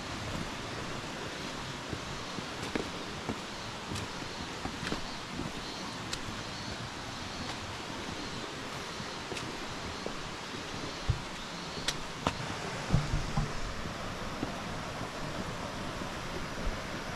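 A stream trickles and flows over rocks.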